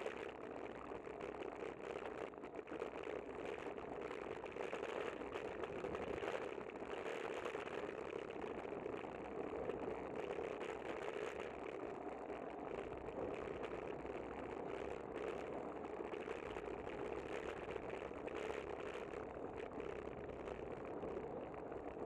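Wind rushes steadily past the microphone outdoors.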